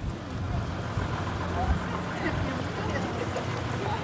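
A bus engine hums as the bus pulls away.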